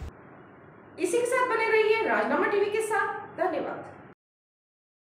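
A woman speaks calmly into a microphone, reading out news.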